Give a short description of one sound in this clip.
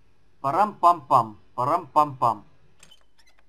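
A heavy wrought-iron door creaks open.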